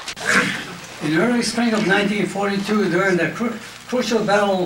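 An elderly man speaks slowly and calmly close by.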